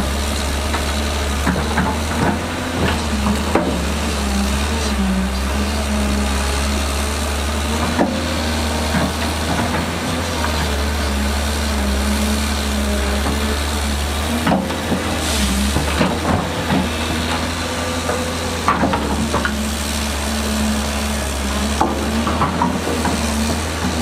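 Rocks and dirt clatter and thud as an excavator bucket digs.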